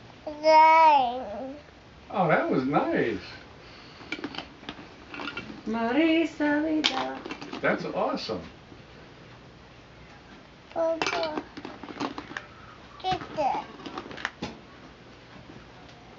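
Plastic toys clatter and rattle as they are handled.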